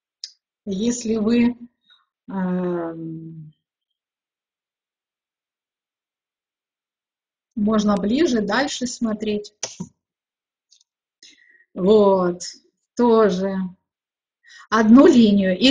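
A middle-aged woman speaks calmly into a microphone, in short phrases with pauses.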